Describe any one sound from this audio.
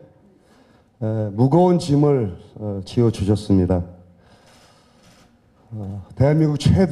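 A middle-aged man speaks calmly into a microphone over loudspeakers.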